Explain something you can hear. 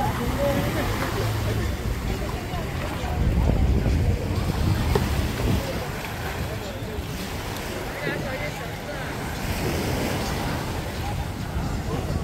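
Small waves lap against boat hulls and the shore.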